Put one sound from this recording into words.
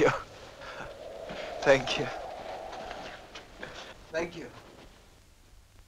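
A man talks quietly.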